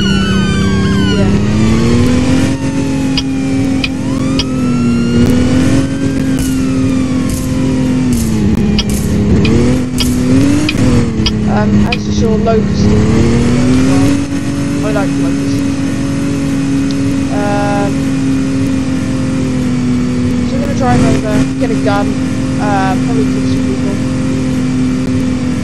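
A truck engine drones steadily, its pitch rising and falling as it speeds up and slows down.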